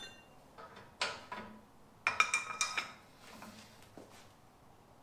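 A metal bar clanks against a metal bumper.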